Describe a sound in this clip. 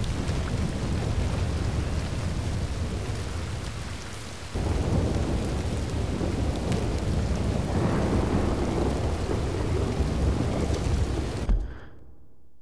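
Strong wind roars across open ground in a storm.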